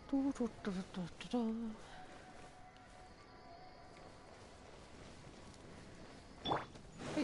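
Footsteps pad softly over sand.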